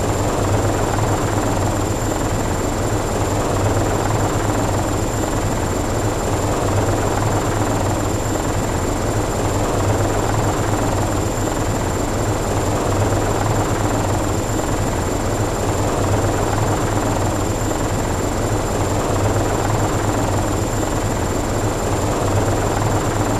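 A helicopter's engine and rotor drone steadily and loudly.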